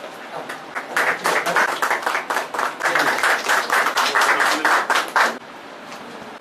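A group of people applaud.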